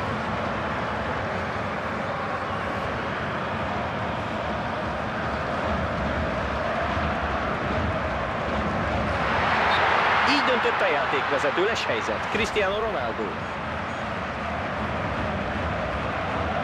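A large stadium crowd roars steadily, swelling louder for a moment.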